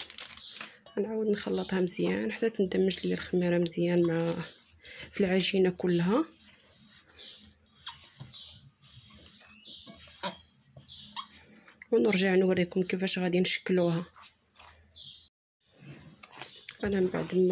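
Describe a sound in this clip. Soft dough squelches and slaps as hands knead it.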